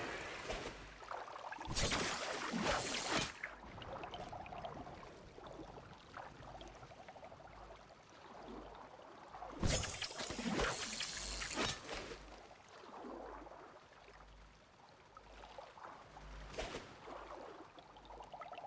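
Water splashes loudly as someone wades through it.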